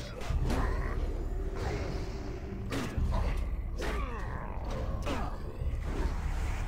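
Swords strike with sharp, ringing hits in a fight.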